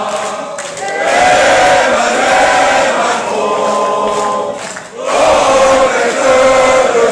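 A man shouts forcefully into a microphone, heard loudly through a loudspeaker in an echoing room.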